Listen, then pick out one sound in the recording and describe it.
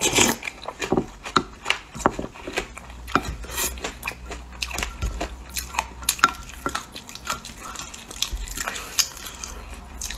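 A spoon scrapes a plastic container.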